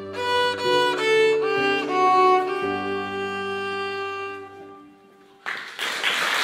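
A violin plays a final phrase.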